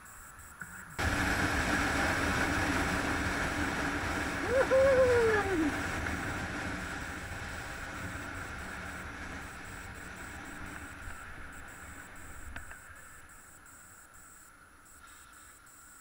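A motorcycle engine roars as the bike rides along a road.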